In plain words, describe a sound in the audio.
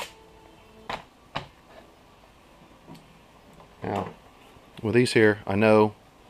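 Small objects are set down on a hard surface with soft knocks.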